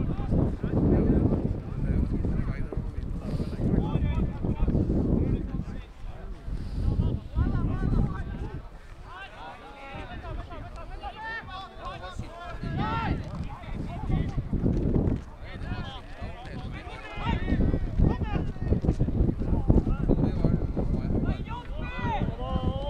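Young men shout to each other across an open field in the distance.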